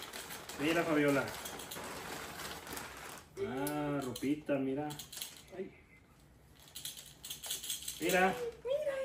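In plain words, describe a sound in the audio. Paper and plastic bags rustle and crinkle.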